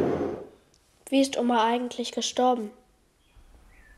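A young girl speaks quietly, close by.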